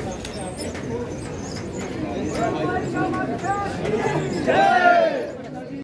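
A crowd of people talk and murmur all around, close by.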